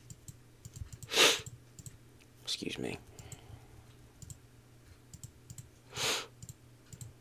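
Swooshing game sound effects play as cards flip and change.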